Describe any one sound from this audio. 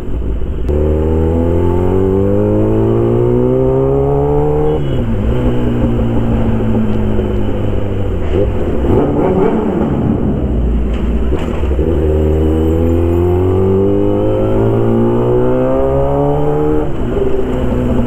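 A motorcycle engine revs up, climbing in pitch as it speeds up, then drops as it slows.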